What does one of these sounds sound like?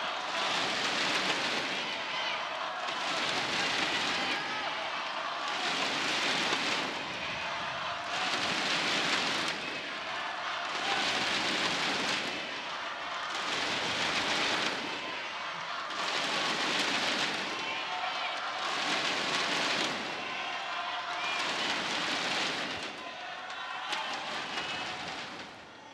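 A large crowd cheers in a steady rhythm in an echoing hall.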